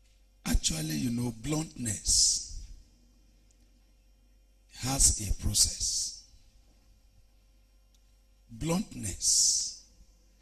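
A man preaches forcefully into a microphone in short bursts with pauses between.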